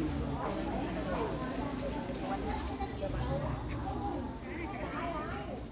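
Women chat nearby with animation.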